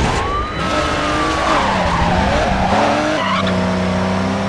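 Car tyres screech while sliding.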